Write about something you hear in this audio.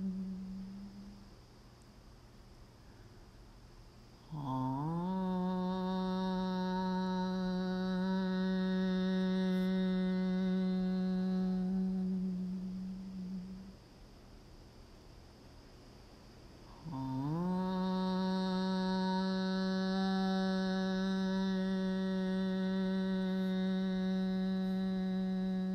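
A woman chants a long, steady low hum nearby, pausing between breaths.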